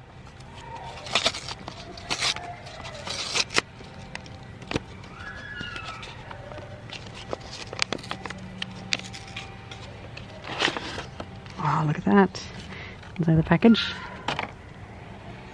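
A foil packet crinkles and tears open.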